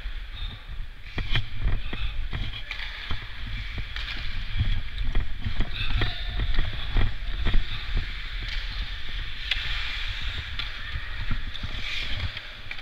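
Hockey sticks clack against the ice and puck, echoing in a large hall.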